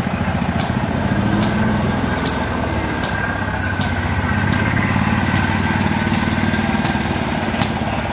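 A golf cart hums past nearby.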